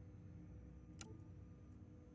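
A short electronic click sounds as a menu selection changes.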